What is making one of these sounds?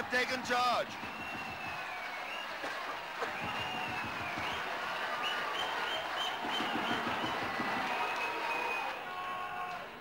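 A large crowd cheers and whistles loudly in an open stadium.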